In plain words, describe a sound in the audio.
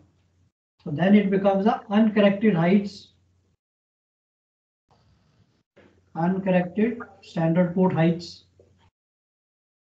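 A man speaks calmly, as if explaining, through a microphone.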